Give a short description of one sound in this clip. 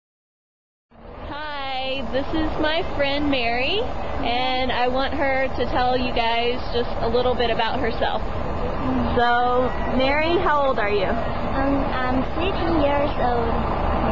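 Two young women speak cheerfully close by.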